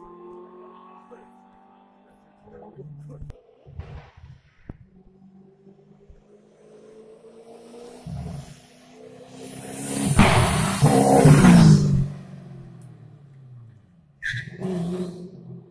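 A car engine revs in the distance.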